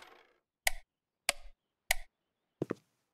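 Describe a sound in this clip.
Footsteps tread on a hard floor indoors.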